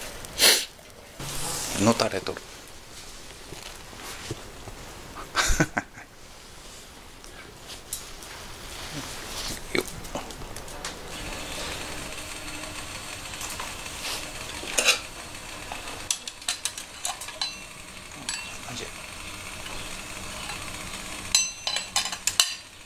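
A wood fire crackles in a metal camp stove.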